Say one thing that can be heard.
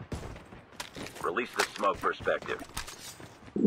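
A young man speaks close to a microphone.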